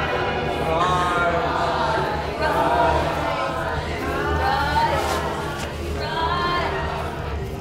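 A group of men and women chant loudly together, close by.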